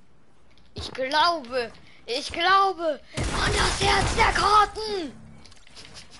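A young man shouts excitedly into a headset microphone.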